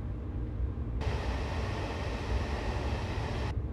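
A loud rushing roar fills a tunnel as a train passes through.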